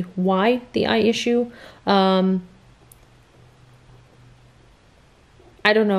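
A woman speaks close up, with animation and pauses.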